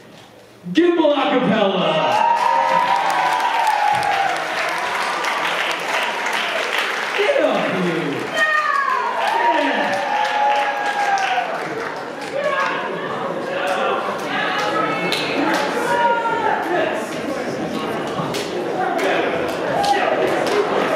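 A group of people clap.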